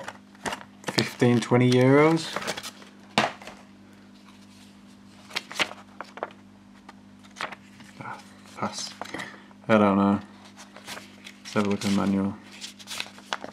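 Pages of a magazine rustle and flap as they are turned.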